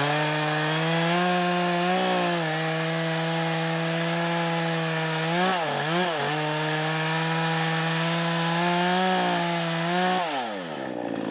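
A chainsaw roars loudly as it cuts into wood.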